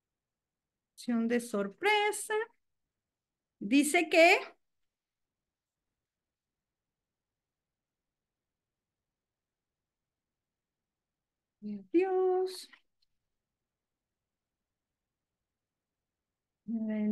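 A woman speaks calmly in short phrases with long pauses, heard through an online call.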